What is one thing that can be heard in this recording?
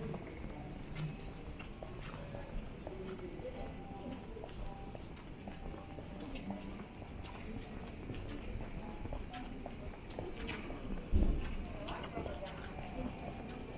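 Quiet street bustle murmurs in the distance outdoors.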